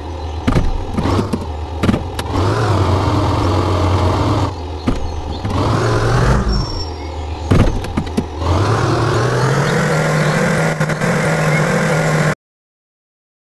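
A truck engine rumbles and revs up and down.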